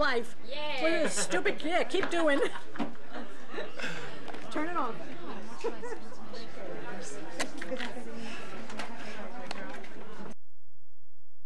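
People chatter in the background of a busy room.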